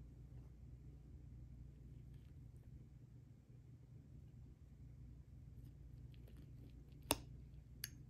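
A metal spoon scrapes and clinks in a ceramic ramekin.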